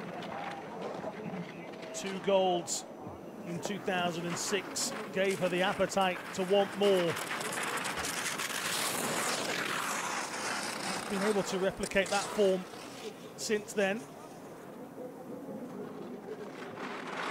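Skis hiss and scrape over hard snow at speed.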